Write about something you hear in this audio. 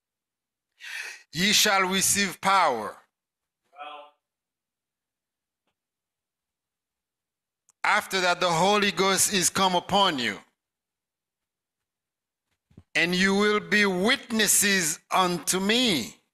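A man preaches with animation into a microphone, in bursts with pauses.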